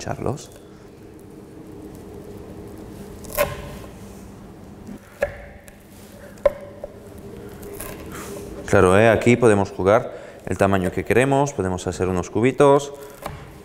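A knife crunches through brittle seeds on a cutting board.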